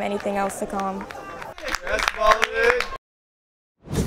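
Several men cheer and shout nearby.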